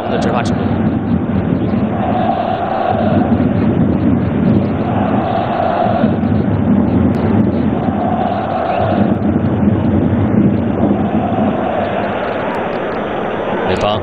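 A stadium crowd chants in a regular rhythm.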